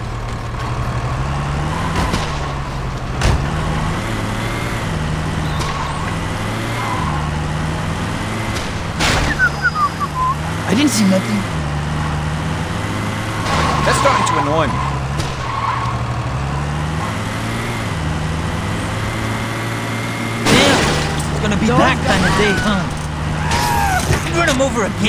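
A truck engine roars and drones steadily as it drives.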